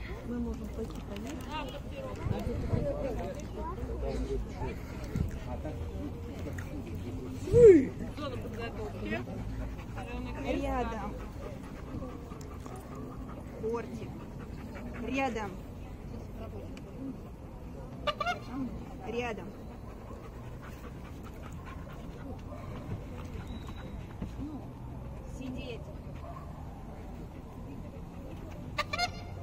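Women talk and call out nearby outdoors.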